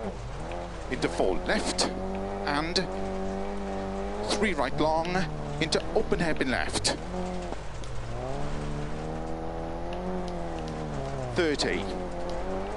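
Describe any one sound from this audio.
Gravel sprays and crunches under spinning tyres.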